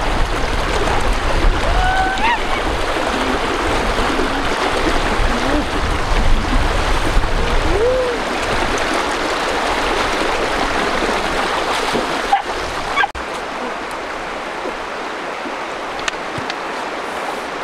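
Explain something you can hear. A river rushes and splashes over rocks close by.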